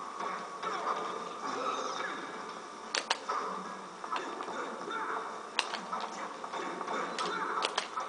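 Punches and kicks land with sharp hits.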